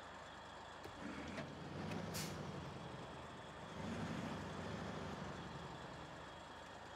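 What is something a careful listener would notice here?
A truck's engine roars louder as it accelerates.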